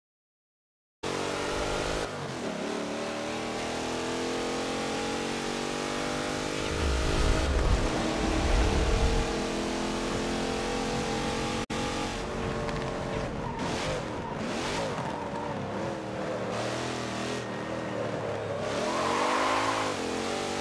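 A truck engine roars, revving up and down as it shifts gears.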